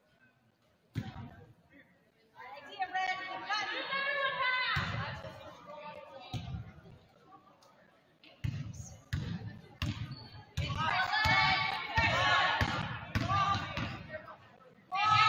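A basketball bounces with hollow thumps on a wooden floor.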